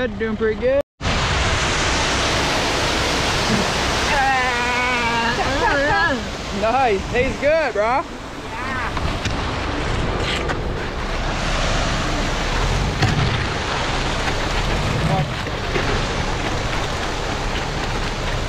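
Wet concrete rushes and slides steadily down a metal chute.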